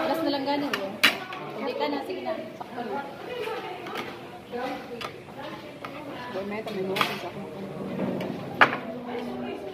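A fork scrapes and clinks on a plate.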